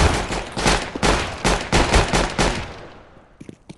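Gunshots fire in rapid bursts, loud and close.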